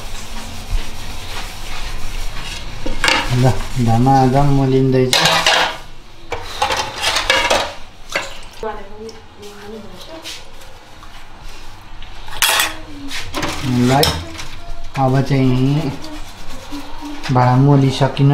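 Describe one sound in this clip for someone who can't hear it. Metal and ceramic dishes clink and clatter in a sink.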